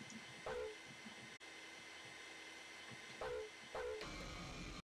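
Short electronic blips chirp from a video game.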